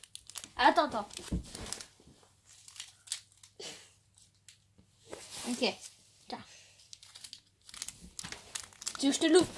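A wrapper crinkles as hands tear it open.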